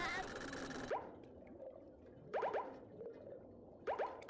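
Short electronic menu blips sound a few times.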